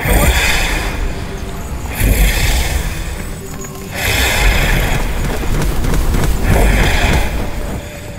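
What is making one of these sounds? Magic blasts burst and crackle in quick bursts.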